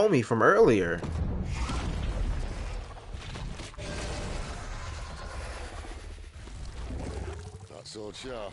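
A large beast roars with a deep rumble.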